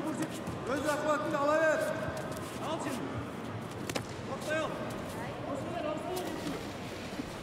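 A body thuds onto a mat as a wrestler is thrown.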